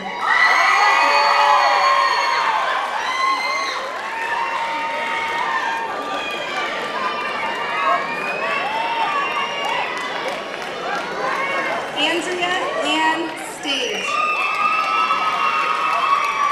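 A crowd claps and cheers in a large echoing hall.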